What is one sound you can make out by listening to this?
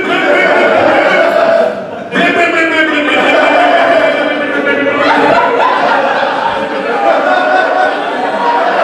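A man speaks loudly and with animation in a room with some echo.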